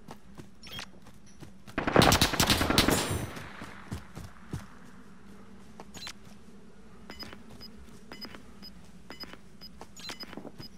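Footsteps thud quickly across dry ground.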